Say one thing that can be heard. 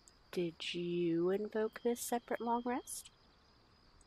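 A young woman speaks calmly with a questioning tone.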